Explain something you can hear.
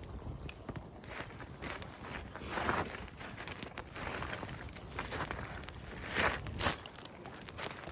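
Dry sticks clatter as they are laid onto a fire.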